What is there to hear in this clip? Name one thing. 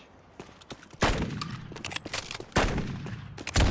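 A sniper rifle fires loud shots in a video game.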